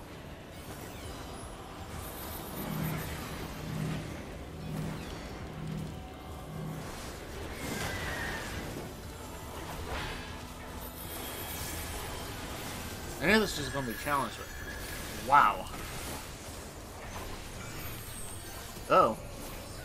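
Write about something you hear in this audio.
Battle effects in a video game whoosh and crackle.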